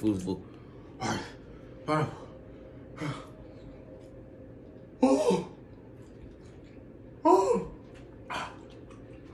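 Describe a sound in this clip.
A young man lets out loud, excited exclamations.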